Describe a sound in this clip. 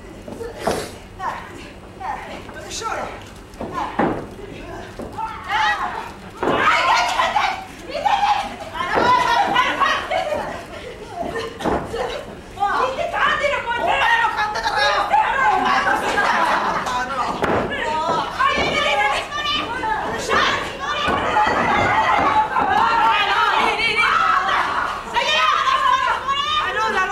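Young women grunt and cry out as they wrestle.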